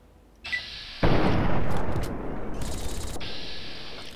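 A gun fires with a loud blast that echoes away.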